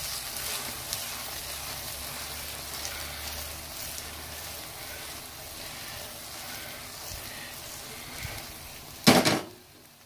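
Food sizzles and crackles softly in a hot frying pan.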